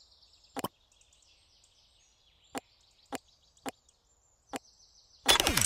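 Short game menu clicks sound several times.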